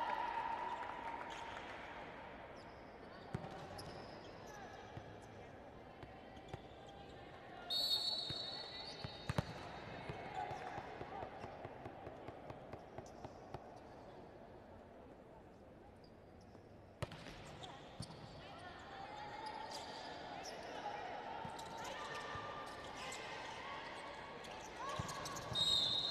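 A crowd cheers and murmurs in a large echoing hall.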